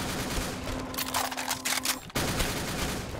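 A rifle magazine clicks as the gun is reloaded.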